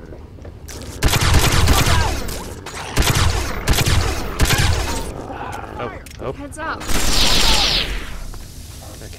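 Laser guns fire in loud rapid bursts.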